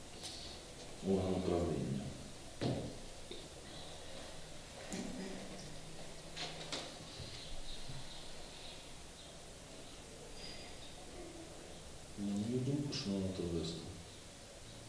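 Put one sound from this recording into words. A middle-aged man reads out calmly, heard through a microphone.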